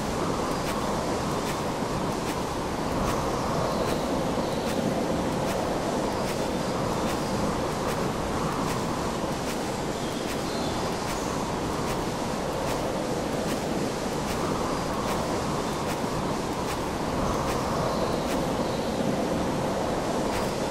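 Rain pours steadily in a misty forest.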